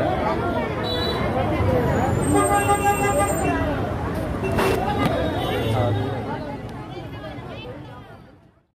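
A crowd of women and men shout and talk loudly over each other outdoors.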